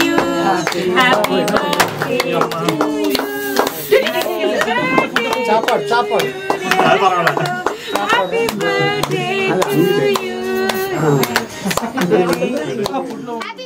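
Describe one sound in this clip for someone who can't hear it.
A group of adults and children sing together.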